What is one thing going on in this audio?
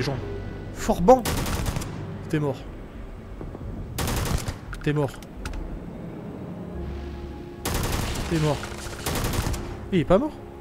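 A rifle fires in short bursts of shots.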